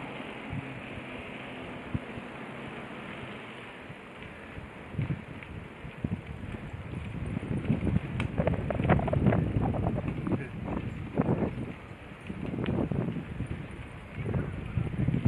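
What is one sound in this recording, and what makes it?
Wind gusts roughly against the microphone outdoors.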